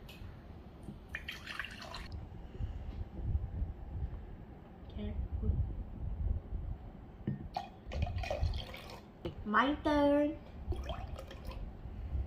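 Water pours into a glass mug.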